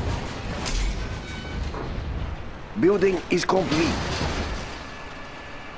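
Explosions boom in a battle.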